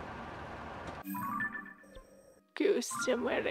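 A soft menu chime plays.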